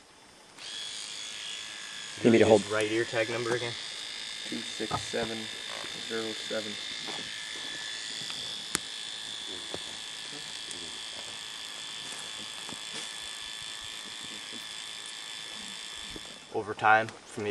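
An electric tattoo pen buzzes steadily with a high hum.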